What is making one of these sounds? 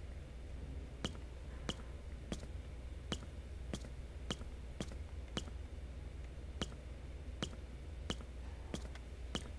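Footsteps knock on a wooden floor at a steady pace.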